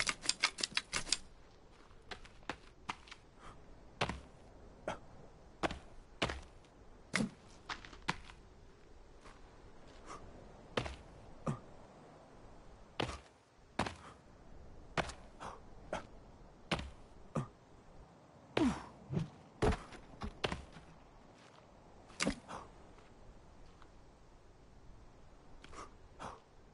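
Footsteps knock on wooden planks and rungs as someone climbs.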